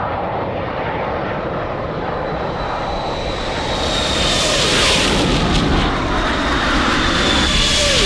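A jet aircraft roars past in steady noise that grows louder.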